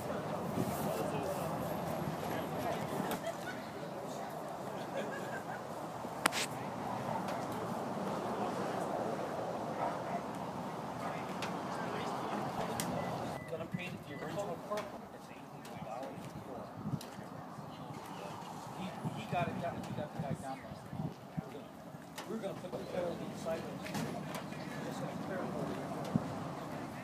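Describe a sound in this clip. A crowd of men and women chat outdoors nearby.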